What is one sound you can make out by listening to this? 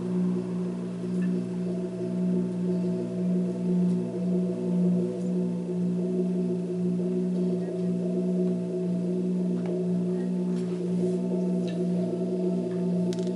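A low electronic drone hums steadily through loudspeakers, swelling and easing slightly.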